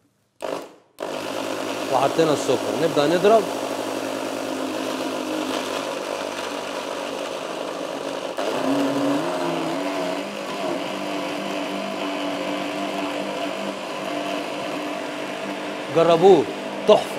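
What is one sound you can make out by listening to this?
A blender whirs steadily at high speed.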